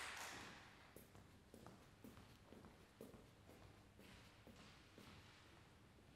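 Footsteps knock on a wooden stage in a large echoing hall.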